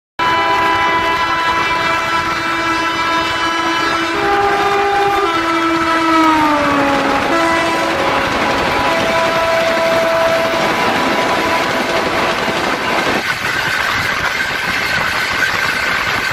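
Trains rumble and clatter past each other on the tracks.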